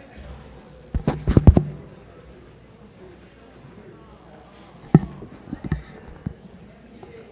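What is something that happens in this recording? A microphone thumps loudly as a man handles it at a podium.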